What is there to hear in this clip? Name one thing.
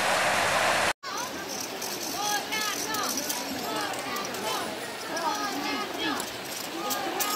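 A shallow river rushes over stones.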